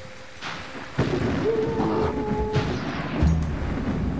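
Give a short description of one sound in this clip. Rain falls steadily.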